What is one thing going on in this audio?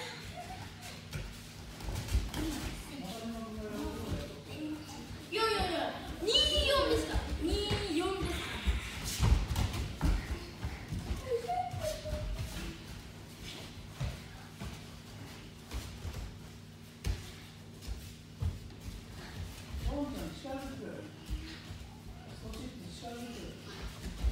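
Bare feet thump and shuffle on judo mats.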